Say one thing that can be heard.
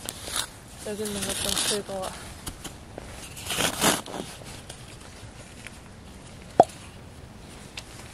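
Snow crunches as a plastic scoop presses into it.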